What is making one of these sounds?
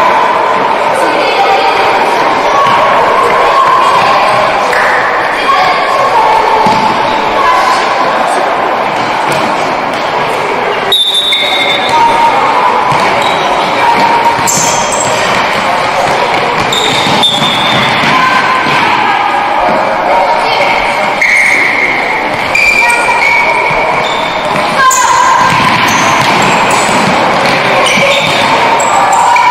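Sneakers squeak sharply on a hall floor, echoing.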